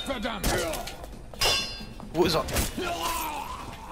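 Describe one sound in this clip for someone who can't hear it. A blade slashes and strikes with a wet thud.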